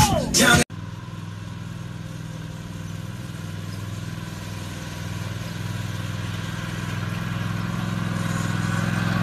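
A riding lawn mower engine hums steadily and grows louder as it approaches.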